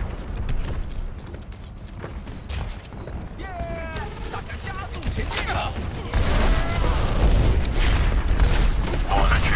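Gunfire from a game rattles in quick bursts.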